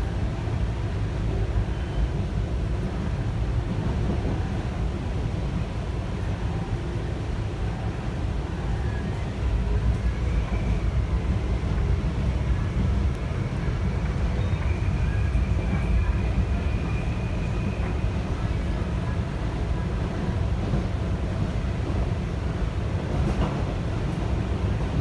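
A train rumbles steadily along the tracks, heard from inside the carriage.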